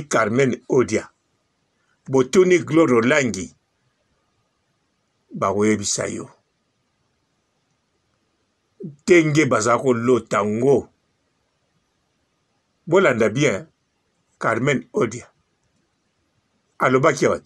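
A man speaks calmly in short bursts, close by.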